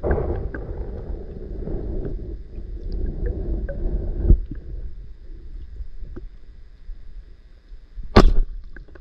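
Water rumbles, muffled and low, as if heard from underwater.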